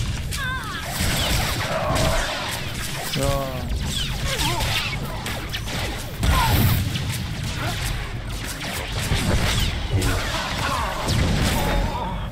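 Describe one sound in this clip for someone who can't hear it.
Energy blades hum and clash.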